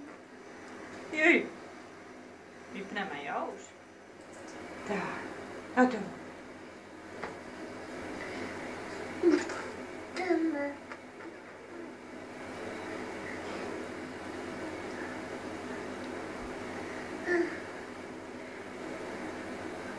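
Water splashes in a small tub.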